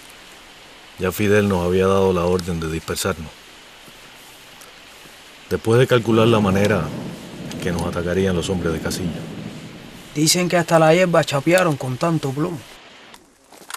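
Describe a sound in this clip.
A man speaks calmly in a low voice nearby.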